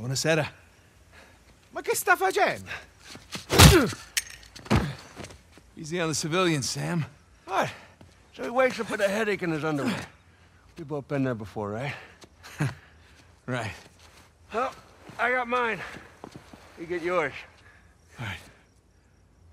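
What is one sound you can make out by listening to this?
A man speaks casually from close by.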